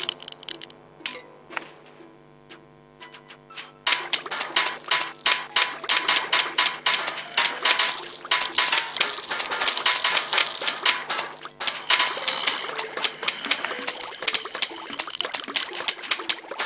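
Steady video game music plays.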